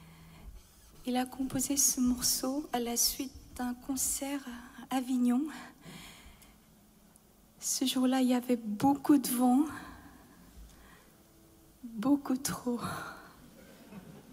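A woman speaks cheerfully into a microphone in a large hall.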